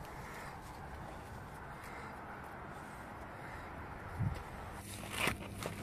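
Footsteps scuff slowly along a paved path outdoors.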